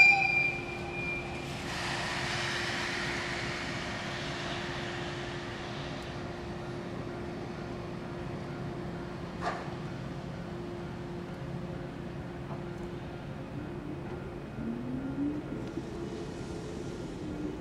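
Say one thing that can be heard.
A locomotive rumbles slowly toward the platform.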